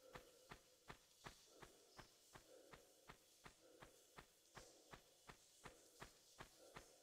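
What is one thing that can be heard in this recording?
Quick footsteps run steadily over hard ground.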